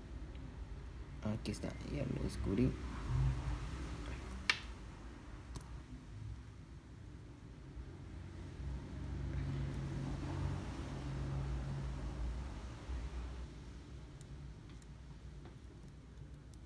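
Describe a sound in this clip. Metal tweezers tick and scrape against a small plastic case.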